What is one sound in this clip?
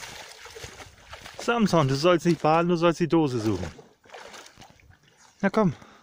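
A flat-coated retriever wades and splashes in shallow water.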